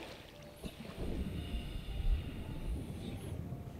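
Water splashes as a swimmer dives under the surface.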